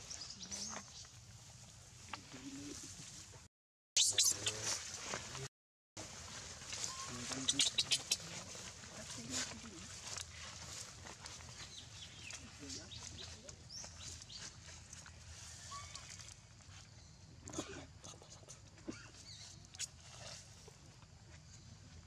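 A baby macaque squeals and cries.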